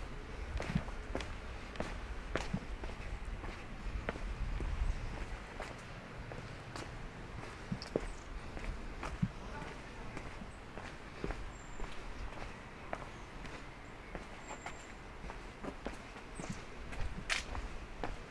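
Footsteps crunch and scuff on a paved path at a walking pace.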